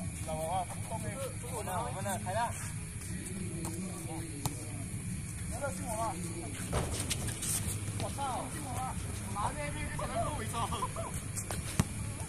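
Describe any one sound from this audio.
Young men call out to each other outdoors.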